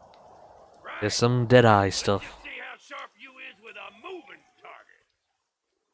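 A man shouts loudly and angrily.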